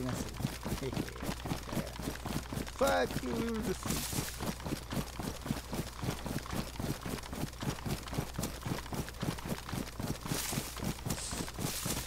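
Quick footsteps rustle through tall grass.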